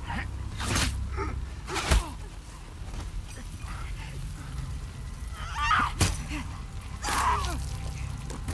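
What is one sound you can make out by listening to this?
Men grunt and strain as they struggle.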